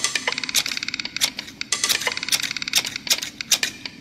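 Scissors snip sharply several times.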